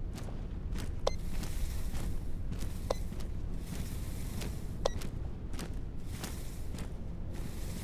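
Footsteps rustle through dry grass and brush at a steady walking pace.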